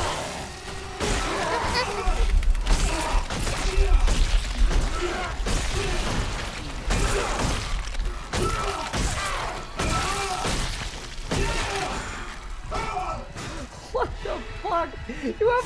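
Heavy blows thud and squelch.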